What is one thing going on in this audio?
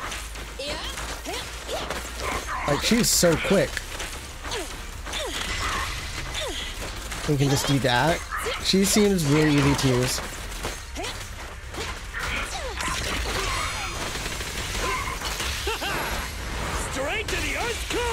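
Sharp sword slashes and impacts hit repeatedly.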